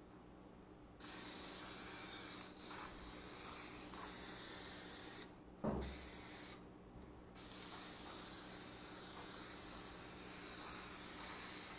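An aerosol can hisses in short and long sprays.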